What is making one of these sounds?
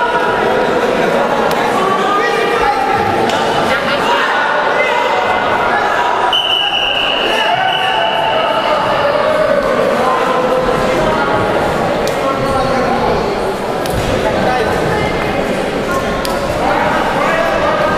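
A crowd of spectators shouts and cheers throughout a large echoing hall.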